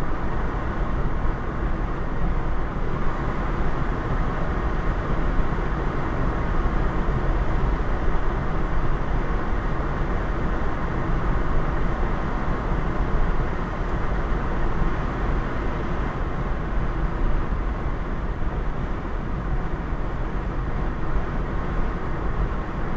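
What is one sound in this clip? Road noise rumbles steadily inside a moving car.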